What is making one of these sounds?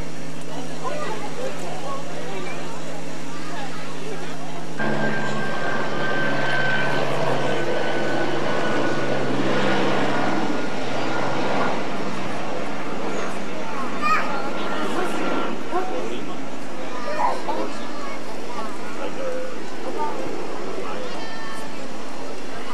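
A crowd of men and women chatter at a distance.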